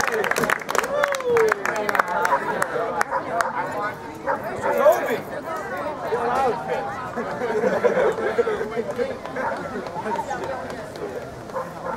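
A crowd of young women chatter and shout excitedly outdoors.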